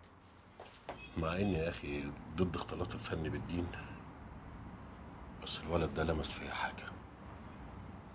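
A middle-aged man speaks in a low, serious voice.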